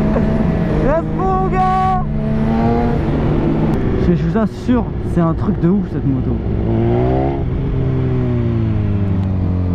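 An inline-four sport bike engine revs hard and shifts up through the gears.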